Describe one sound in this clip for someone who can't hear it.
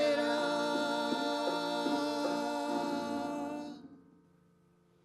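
A small group sings through a microphone.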